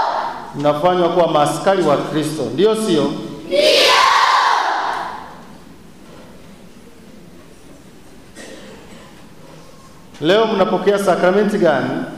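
A man chants in a clear voice through a microphone.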